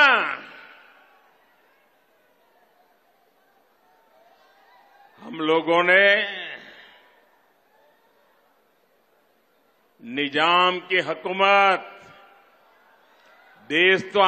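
An elderly man speaks forcefully into a microphone through loudspeakers, with echoing pauses between phrases.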